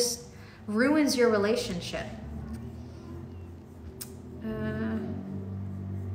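A young woman speaks close by, with animated, rising and falling pitch.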